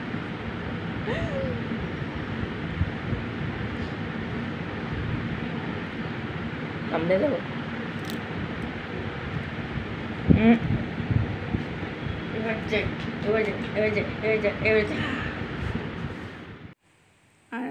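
A woman speaks playfully close by.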